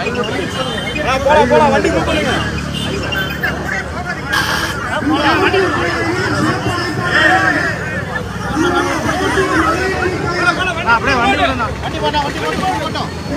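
A large crowd of men chants and shouts outdoors.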